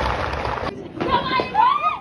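Women chat and laugh nearby.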